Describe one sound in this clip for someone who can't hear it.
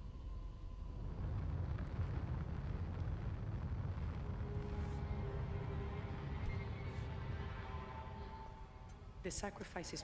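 Flames roar and crackle with a deep rumble.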